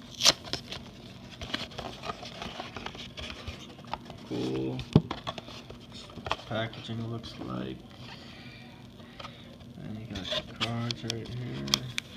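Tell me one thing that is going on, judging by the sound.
A cardboard box scrapes and taps.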